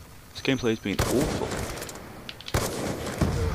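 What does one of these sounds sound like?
A rifle fires a loud, sharp shot.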